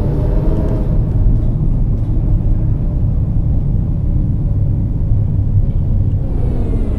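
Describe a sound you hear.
A tram motor hums and rumbles steadily as the tram rolls slowly along the rails.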